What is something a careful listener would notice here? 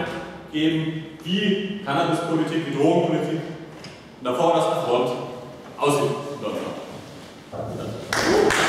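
A man speaks calmly to an audience in a large echoing room.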